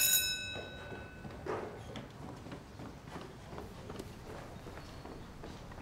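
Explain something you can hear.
Footsteps come down stone stairs.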